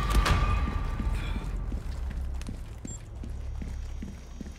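Footsteps thud on a stone floor at a steady walking pace.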